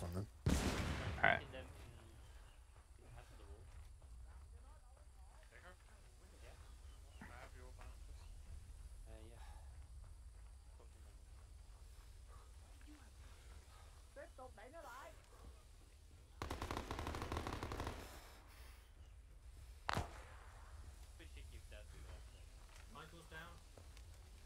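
Footsteps thud on dirt.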